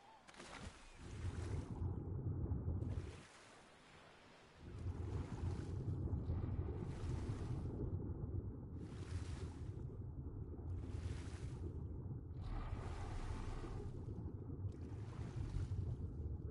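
A deep muffled underwater rumble surges around a swimmer.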